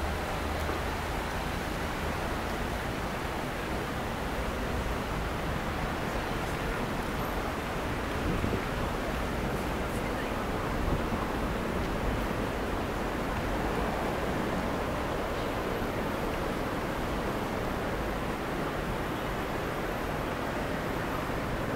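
City traffic hums steadily in the distance outdoors.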